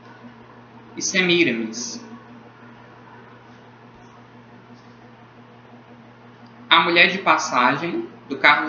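A young man speaks calmly and close up, in short bursts.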